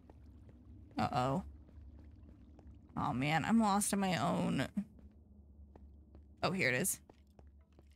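A young woman speaks with animation into a microphone, in short bursts.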